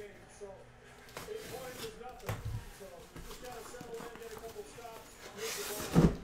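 A cardboard box scrapes and thumps as it is turned over.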